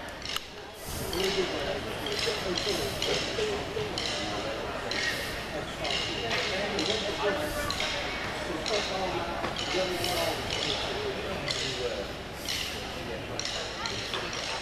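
A marching band plays brass music in a large open space.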